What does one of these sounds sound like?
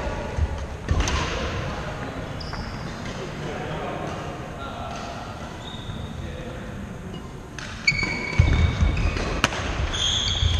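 Shuttlecocks are struck with sharp racket pops in a large echoing hall.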